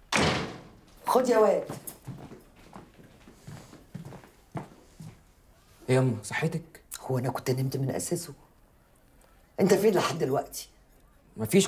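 A teenage boy answers in a tense voice close by.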